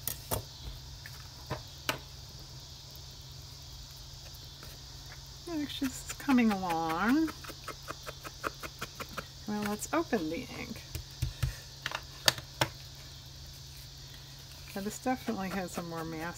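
Stiff paper card rustles and taps as hands handle it.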